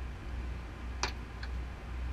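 Metal gear clanks sharply a couple of times.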